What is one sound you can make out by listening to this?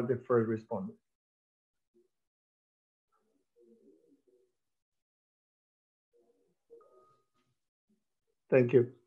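A middle-aged man speaks calmly through an online call.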